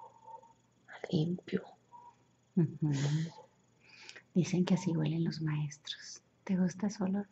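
A young woman snores loudly close by.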